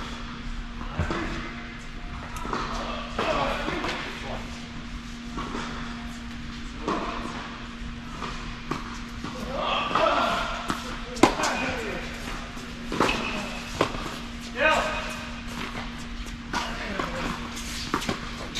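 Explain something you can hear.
Tennis balls are struck with rackets, with sharp pops echoing in a large hall.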